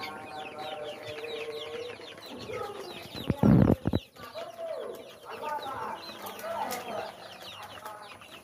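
Many young chicks cheep and peep constantly.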